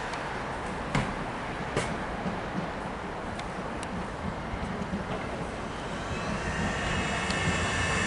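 A second train approaches and rumbles past.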